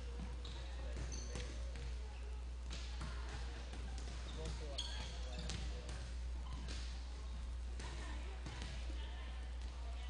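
A volleyball is hit with sharp slaps in a large echoing gym.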